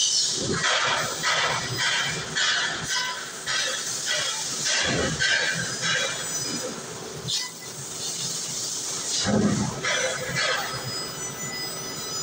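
A laser cutting machine crackles and hisses as it cuts metal.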